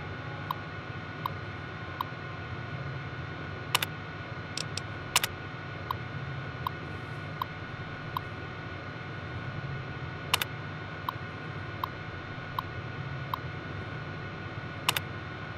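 A computer terminal ticks steadily as text prints out.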